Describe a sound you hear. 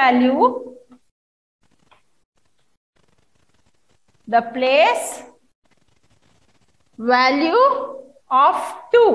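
A woman speaks slowly and clearly nearby, in short phrases.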